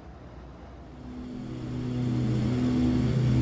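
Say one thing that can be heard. A propeller plane's engine roars louder from outside.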